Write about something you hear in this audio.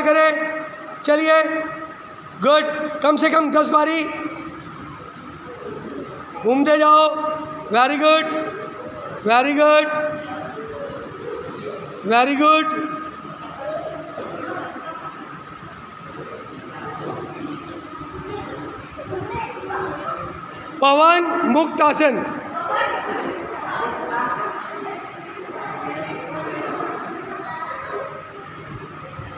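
Children murmur and chatter in the background.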